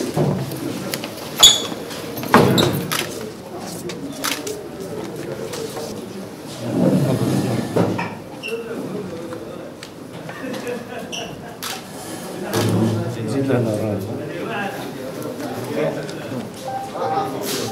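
Several men and women talk nearby in a busy room.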